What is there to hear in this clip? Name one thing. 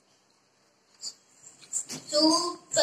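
A second boy talks briefly, close by.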